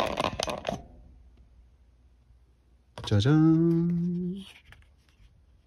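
Paper rustles softly as a card is handled.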